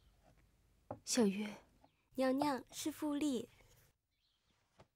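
A young woman speaks softly and tensely, close by.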